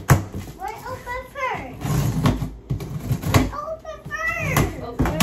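A young child babbles in a high voice close by.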